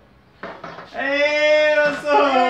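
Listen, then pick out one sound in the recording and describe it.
A man shouts excitedly nearby.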